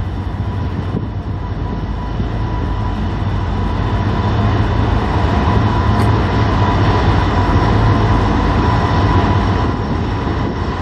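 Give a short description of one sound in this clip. Steel wheels clatter and squeal on the rails.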